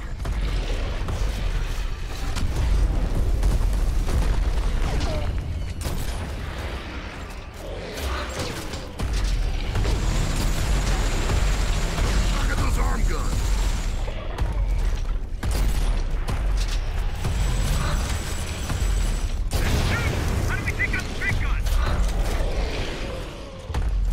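Heavy gunfire booms and rumbles.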